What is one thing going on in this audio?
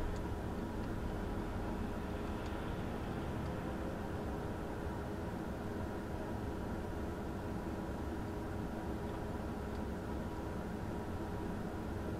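A car engine idles steadily, heard from inside the car.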